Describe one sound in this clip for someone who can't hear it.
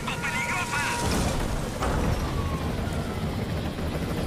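A helicopter lands with a rush of wind and dust.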